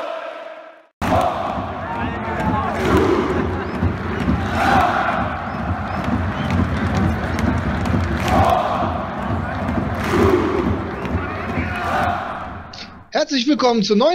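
A large stadium crowd chants and roars.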